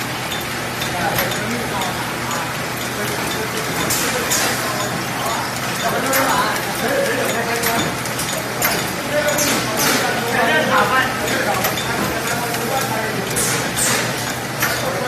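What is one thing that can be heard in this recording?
A packaging machine hums and clatters steadily.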